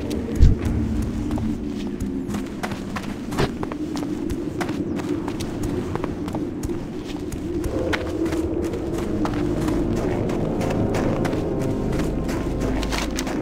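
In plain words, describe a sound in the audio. Footsteps run steadily over hard ground.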